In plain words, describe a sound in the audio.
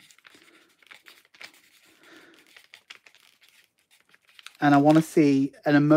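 A marker pen squeaks faintly as it writes on paper.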